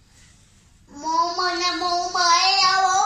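A boy sings loudly into a microphone.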